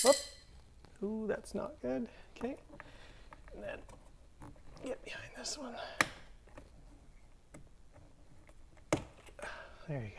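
A plastic pry tool scrapes and clicks against a door panel.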